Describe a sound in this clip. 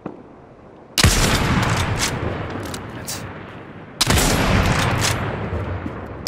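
A rifle fires loud shots that echo and slowly fade.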